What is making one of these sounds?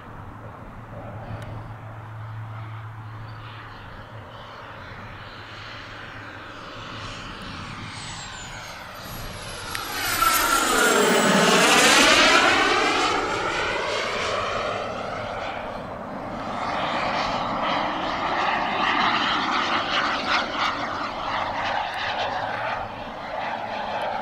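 A jet engine roars as a fighter jet approaches, passes low overhead with a loud sweeping whoosh, and rumbles away.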